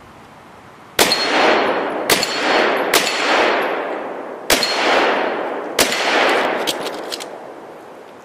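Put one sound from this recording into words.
Pistol shots crack outdoors and echo through the woods.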